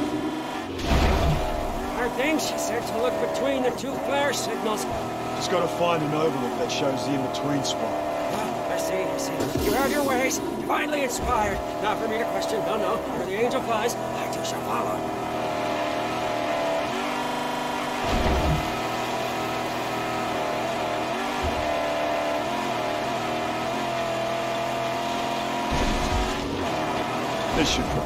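A car engine roars steadily as a car races across sand.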